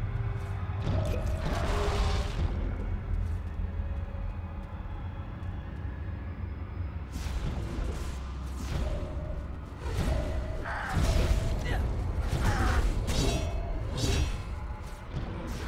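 Magic spells crackle and burst in short bursts.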